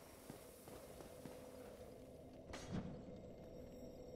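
Footsteps clank on stone.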